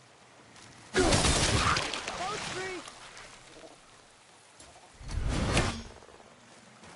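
A loud magical burst rushes and crackles, then fades.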